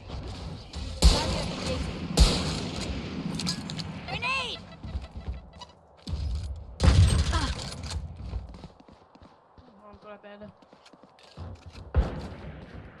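A sniper rifle fires with sharp, loud cracks.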